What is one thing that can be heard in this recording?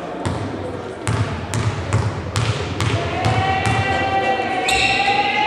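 A basketball bounces repeatedly on a wooden floor in a large echoing hall.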